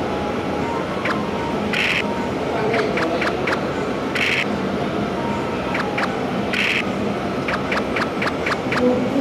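Game pieces tap in quick hops across a board.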